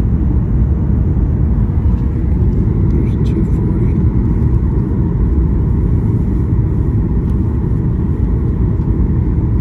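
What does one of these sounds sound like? A jet engine roars steadily from inside an aircraft cabin.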